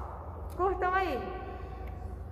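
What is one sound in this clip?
A young woman speaks briefly through a mask, close by.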